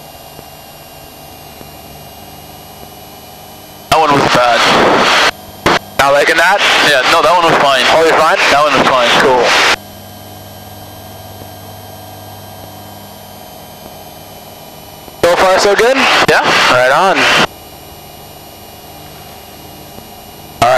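A small plane's engine drones steadily inside the cabin.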